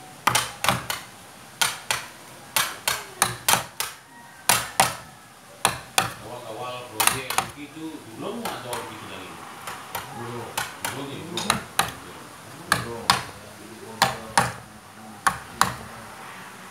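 A mallet taps a chisel into wood in sharp, quick knocks.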